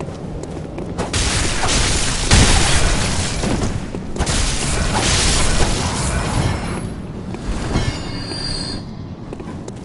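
Blades slash and strike in a fight, with loud bursts of noise.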